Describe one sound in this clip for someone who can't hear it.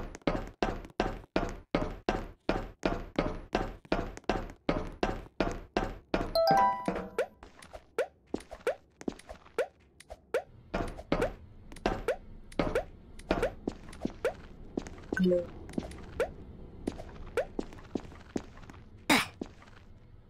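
Quick footsteps patter in a video game.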